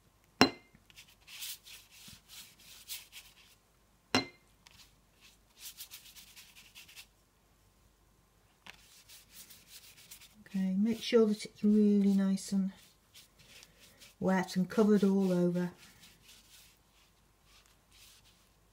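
A paintbrush brushes and dabs softly on paper.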